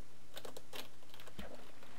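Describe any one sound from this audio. Water splashes softly.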